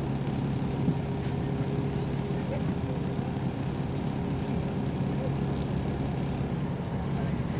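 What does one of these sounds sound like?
A diesel city bus engine hums as the bus drives along, heard from inside.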